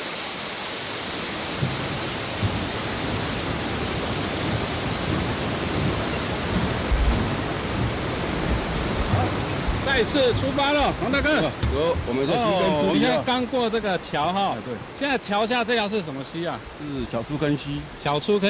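A stream rushes and gurgles nearby.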